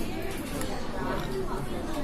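A spoon scrapes and clinks against a ceramic pot.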